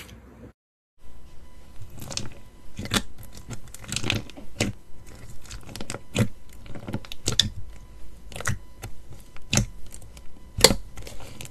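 Thick slime pops and squishes as fingers press into it.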